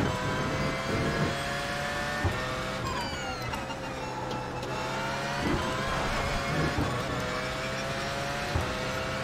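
Tyres rumble over the track.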